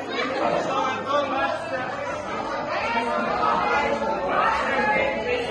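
A large crowd of men and women chatter and call out together in an echoing hall.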